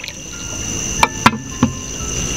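A clay teapot clinks against a tray.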